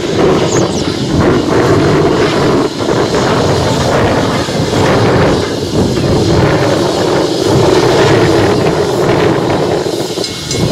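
A steam locomotive chugs loudly with rhythmic puffs as it pulls a train.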